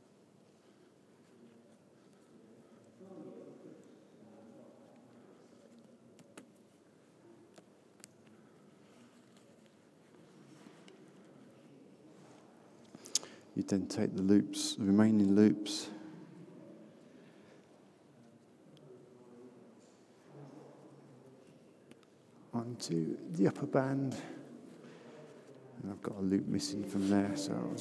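Cord rustles softly as hands coil it.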